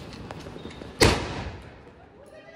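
A firework shoots up with a sharp bang.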